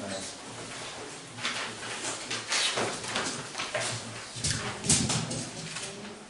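Paper sheets rustle and flap.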